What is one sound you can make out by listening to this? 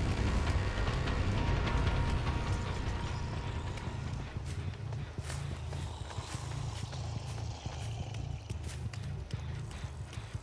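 Heavy footsteps thud steadily on the ground.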